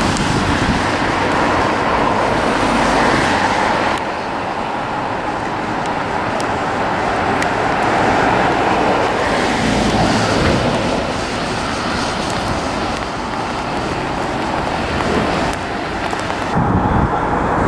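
A freight train rumbles past close by, its wagons clattering over the rails.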